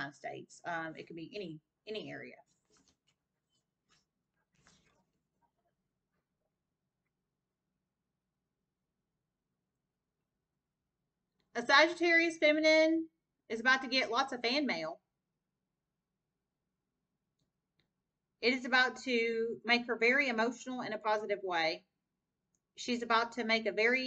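A young woman speaks calmly and close to a microphone, with pauses.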